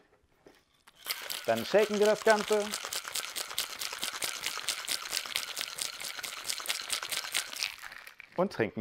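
Ice rattles in a cocktail shaker being shaken hard.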